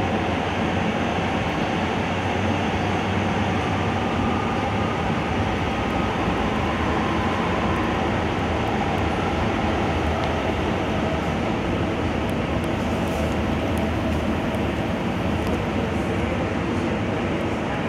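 A train rumbles steadily along the tracks through a tunnel.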